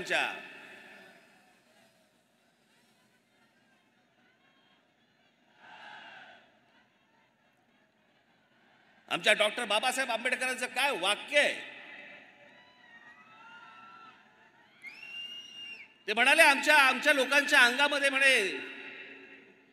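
A man speaks forcefully into a microphone over loudspeakers, with pauses.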